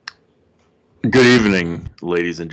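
A man speaks with animation into a close microphone, heard over an online call.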